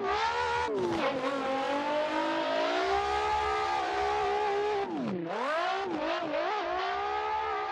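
A racing car engine roars at high revs, rising and falling as gears shift.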